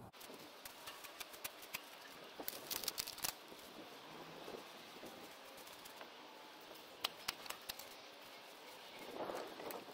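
A hand trowel scrapes and digs into soil.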